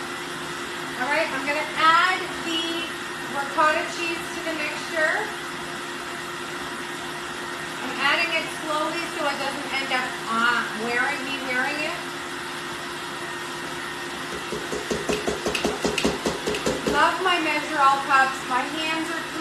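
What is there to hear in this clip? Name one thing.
A woman talks with animation, close by.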